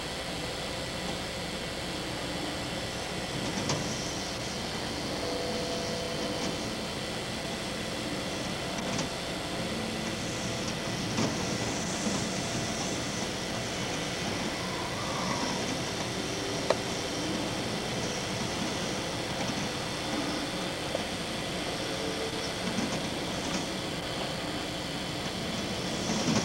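Heavy rain pours down and hisses.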